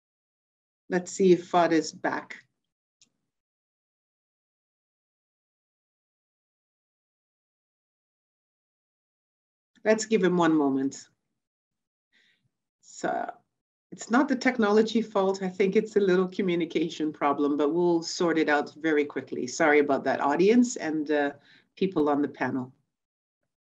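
A woman speaks calmly and closely into a microphone, with pauses.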